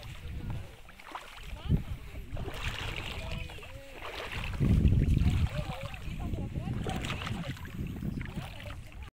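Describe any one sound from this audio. Shallow water laps and ripples gently over stones.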